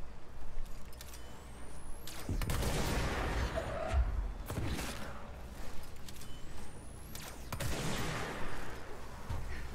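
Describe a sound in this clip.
A gun fires in loud bursts, with blasts that boom and echo.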